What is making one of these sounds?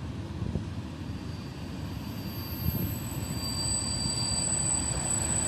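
Train wheels rumble on the rails.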